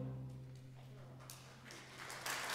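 An orchestra holds a final chord that fades out.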